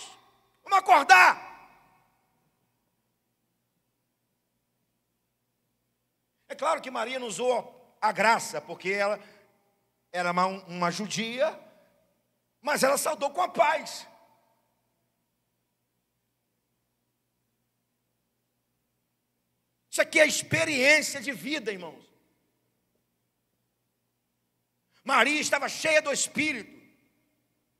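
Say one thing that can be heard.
A middle-aged man speaks with animation into a microphone, in short bursts with long pauses.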